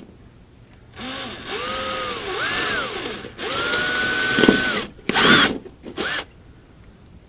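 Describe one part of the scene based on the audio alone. A power drill whirs, speeding up and slowing down in short bursts.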